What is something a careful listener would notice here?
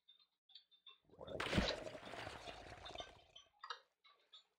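Water splashes and rushes as a swimmer dives under.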